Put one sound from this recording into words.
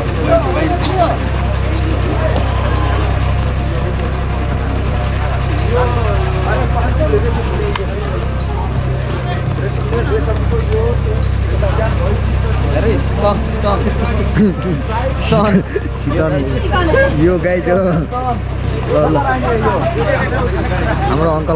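Several men talk with animation close by, outdoors.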